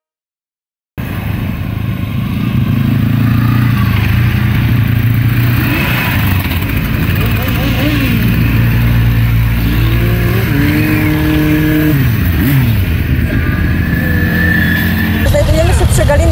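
Motorcycle engines rumble and rev as a line of motorcycles rides past outdoors.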